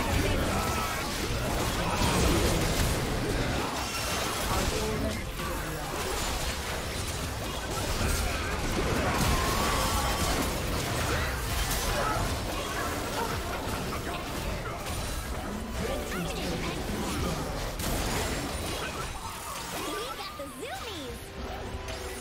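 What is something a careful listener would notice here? Magic spells blast and crackle in a rapid, chaotic battle.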